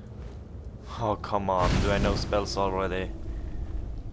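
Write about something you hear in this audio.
A burst of flame roars and crackles.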